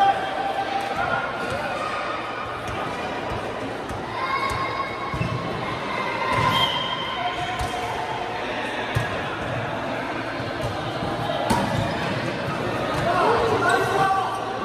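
Sneakers squeak on a hard floor.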